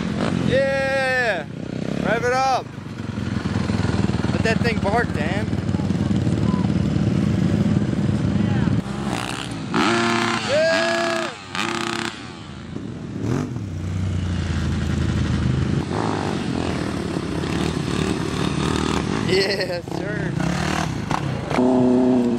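Dirt bike engines rev loudly and roar past up close.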